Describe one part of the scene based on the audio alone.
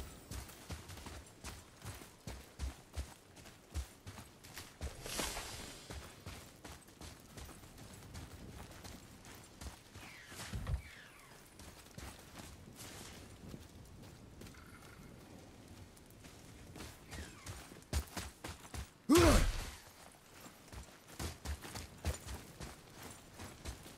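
Heavy footsteps thud on hard ground.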